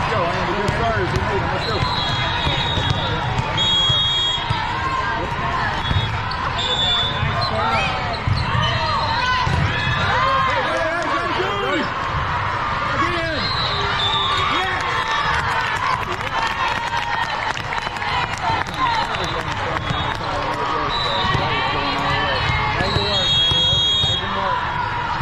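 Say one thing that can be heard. A volleyball is struck with a hand.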